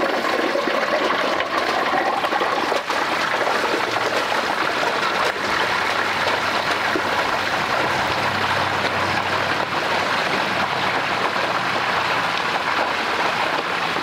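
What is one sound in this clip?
Liquid pours into a metal pot.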